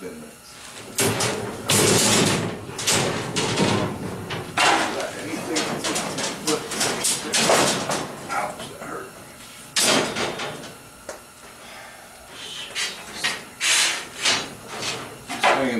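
Arc welding crackles and sizzles in bursts.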